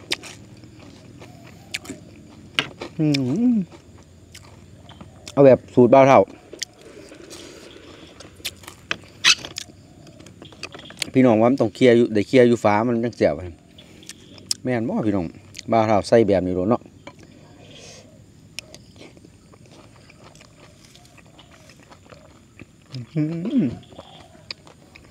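A man chews and slurps food noisily.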